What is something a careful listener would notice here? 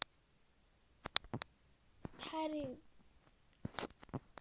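A gun reloads with sharp metallic clicks.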